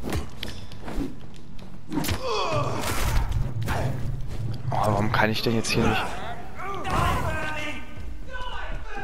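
Melee weapon blows land in a close fight.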